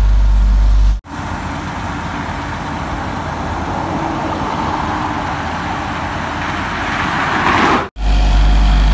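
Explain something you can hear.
Cars rush past on a nearby road.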